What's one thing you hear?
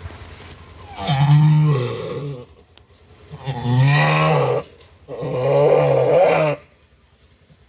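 A sheep bleats loudly in long, strained calls, close by.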